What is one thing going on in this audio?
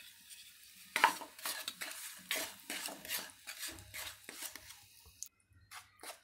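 A wooden spoon scrapes and knocks against a pan.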